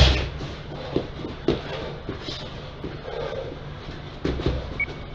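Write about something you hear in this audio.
Footsteps shuffle on a canvas floor.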